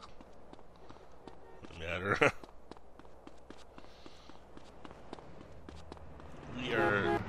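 Quick footsteps patter steadily on pavement.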